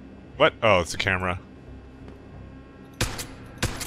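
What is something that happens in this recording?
A pistol fires a single shot.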